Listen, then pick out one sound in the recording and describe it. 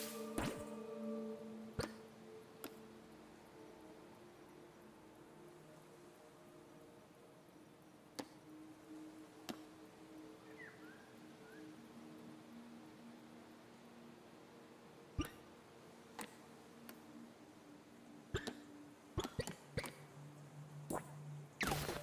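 Menu selection clicks sound now and then.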